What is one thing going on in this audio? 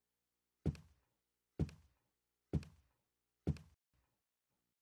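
Heavy footsteps thud slowly and evenly up stairs, with a short echo.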